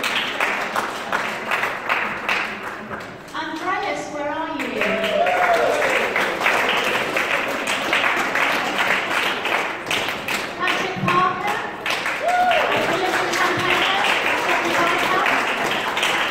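A group of people clap their hands steadily in an echoing hall.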